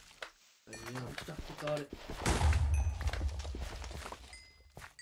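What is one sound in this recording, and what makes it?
Stone crunches and cracks as it is dug away.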